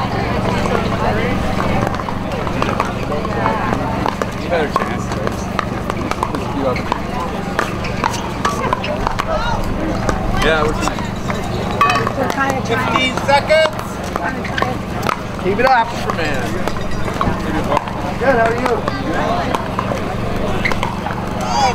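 A crowd of men and women chatters outdoors in the background.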